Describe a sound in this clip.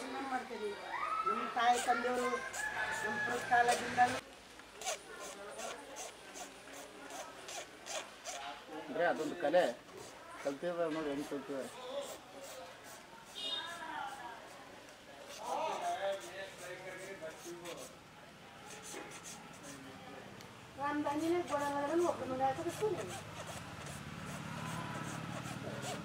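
A file rasps back and forth over hard skin.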